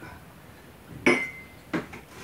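A man sets a mug down on a table with a knock.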